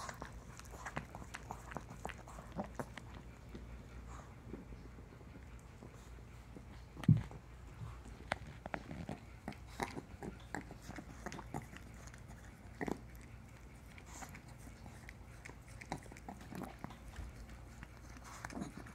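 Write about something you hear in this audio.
A small dog sniffs and snuffles close by.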